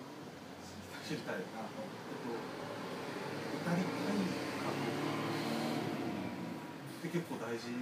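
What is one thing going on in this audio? Several young men talk and laugh together nearby.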